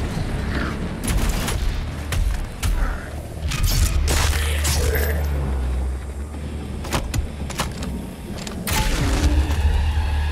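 Heavy guns fire in loud bursts with booming blasts.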